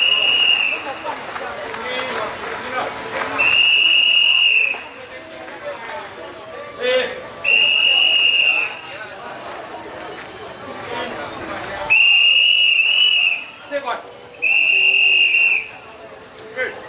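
A crowd of men and women murmurs and chatters nearby outdoors.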